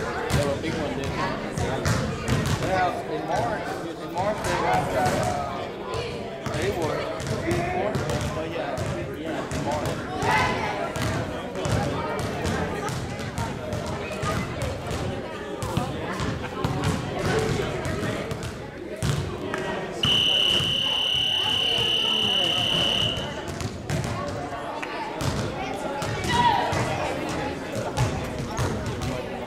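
Men and children talk and call out in a large echoing hall.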